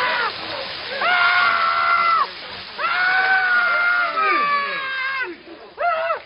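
A man screams in agony.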